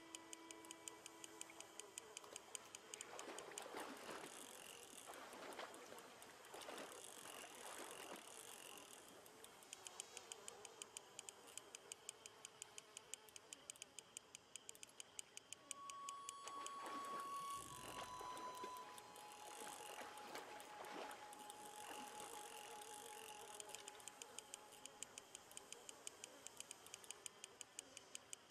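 A fishing reel clicks rapidly and steadily.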